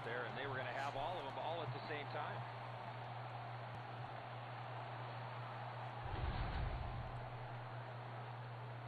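A large crowd cheers and roars in an arena.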